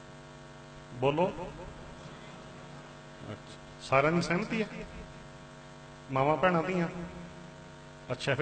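An elderly man calls out forcefully in short bursts through a microphone, with pauses between.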